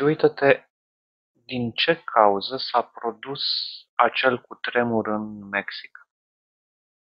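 A young man speaks calmly close to a headset microphone.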